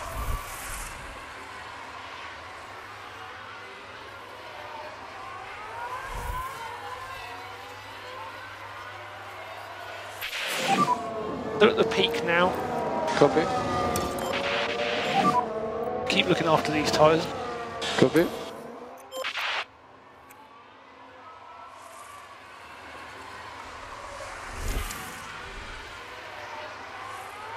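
A racing car engine whines and roars, rising and falling in pitch.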